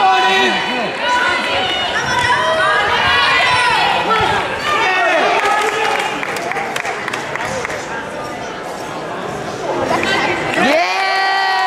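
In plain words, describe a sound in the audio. A crowd of spectators talks and shouts loudly in a large echoing hall.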